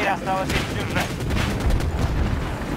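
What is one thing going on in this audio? An explosion bursts nearby.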